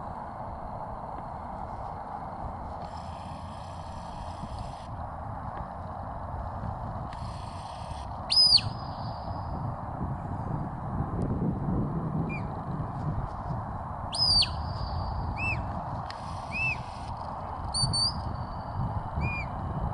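Wind blows steadily across an open field.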